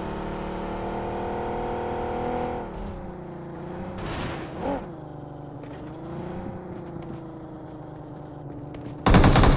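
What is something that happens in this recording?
A car engine drones steadily, then its pitch wavers.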